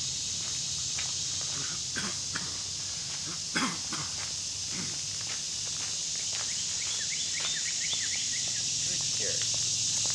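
A dog's paws patter on gravel.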